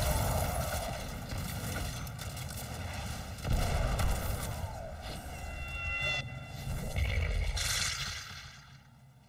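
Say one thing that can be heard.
Guns fire in loud, rapid bursts.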